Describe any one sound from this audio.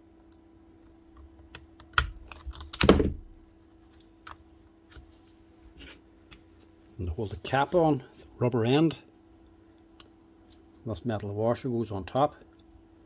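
Small metal parts click and scrape.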